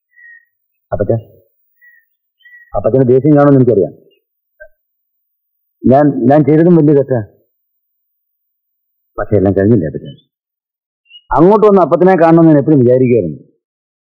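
A middle-aged man speaks in short, slow phrases, close by.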